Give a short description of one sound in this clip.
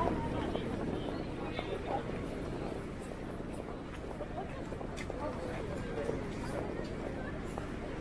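A crowd of people murmurs around.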